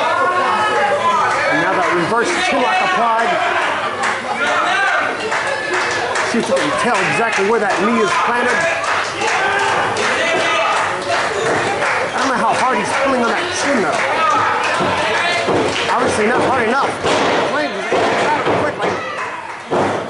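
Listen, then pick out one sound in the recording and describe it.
Bodies thud on a wrestling ring mat.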